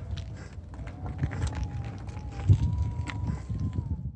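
Footsteps thud softly on dry grass.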